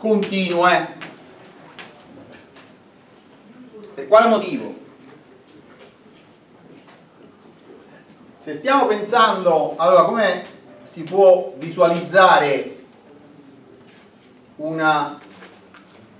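A middle-aged man lectures, speaking calmly in bursts.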